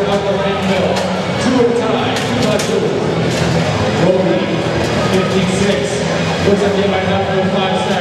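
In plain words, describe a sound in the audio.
Robot machines whir and clatter on the playing field.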